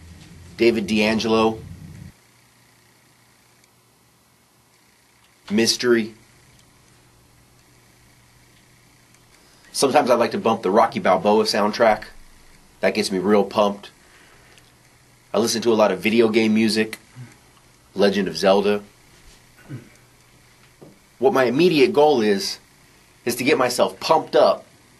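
A young man speaks with animation close by, in short bursts.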